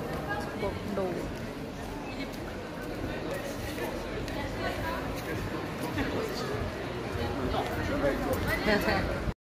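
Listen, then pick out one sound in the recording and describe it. A crowd of people chatters outdoors in a busy street.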